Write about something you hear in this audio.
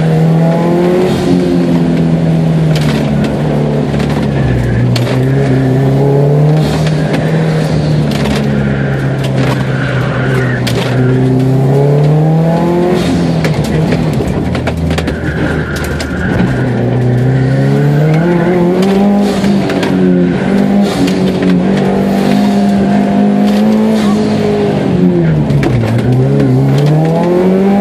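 Tyres squeal on the track surface in the corners.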